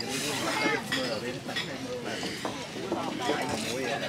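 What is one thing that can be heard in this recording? A young man slurps noodles.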